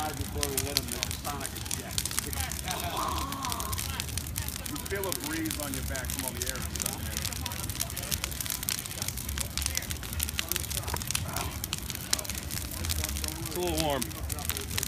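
A large fire crackles and pops sharply.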